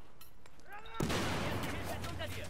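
An explosion crackles and rumbles.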